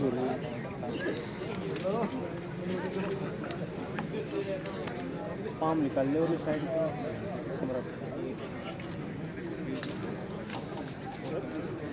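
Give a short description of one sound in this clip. A large crowd of men chatters outdoors.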